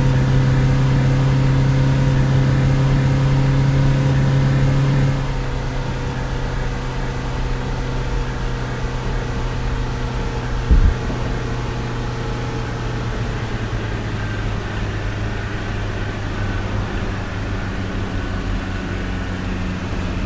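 A truck engine hums steadily and drops in pitch after a gear change.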